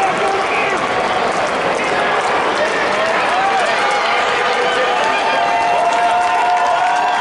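A crowd chatters and calls out in a large echoing arena.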